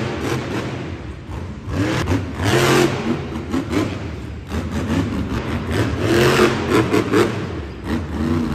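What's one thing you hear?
A monster truck engine roars loudly, revving up and down.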